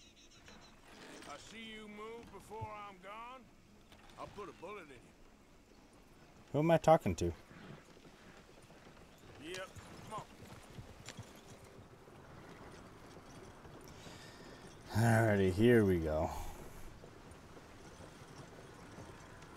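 A horse-drawn wagon rolls along a dirt track.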